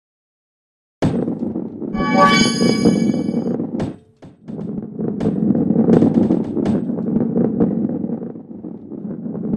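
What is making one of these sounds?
A ball rolls with a low, steady rumble over a wooden track.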